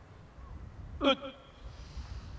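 A group of men shout sharply in unison outdoors.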